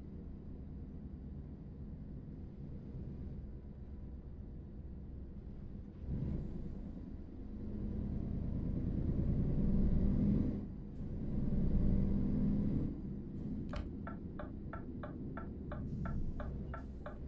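A truck's diesel engine rumbles steadily, swelling louder as it speeds up.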